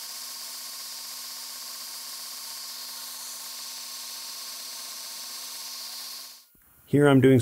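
A belt sander whirs steadily.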